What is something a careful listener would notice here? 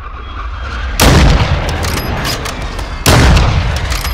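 A sniper rifle fires loud booming shots that echo away.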